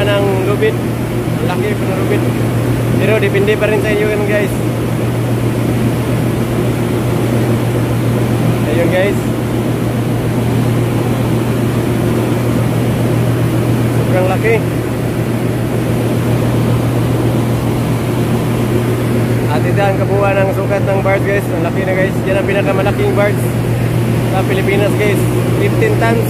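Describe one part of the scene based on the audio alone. Men call out to each other across an open deck.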